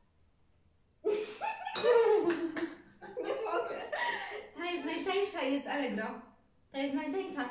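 A second young woman talks and laughs close by.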